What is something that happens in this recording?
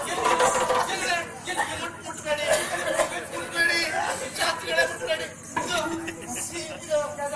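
Drums beat rapidly in a lively rhythm.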